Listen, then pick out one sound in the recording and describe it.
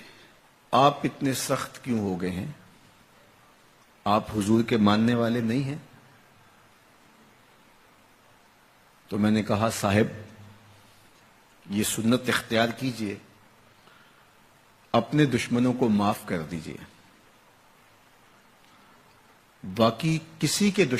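A man speaks slowly and emphatically into a microphone, with long pauses between phrases.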